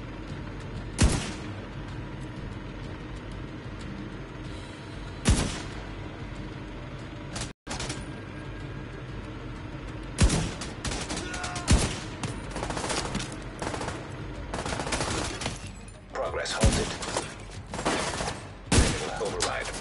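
Sniper rifle shots crack loudly, one at a time.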